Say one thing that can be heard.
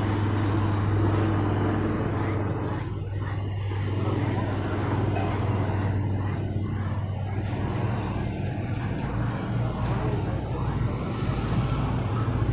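A paintbrush swishes in rhythmic strokes over a smooth board.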